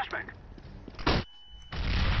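A flash grenade bangs loudly.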